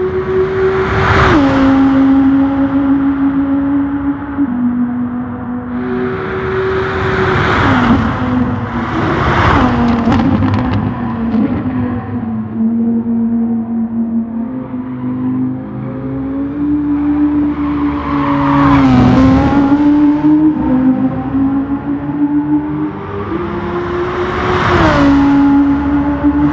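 A race car whooshes past close by several times.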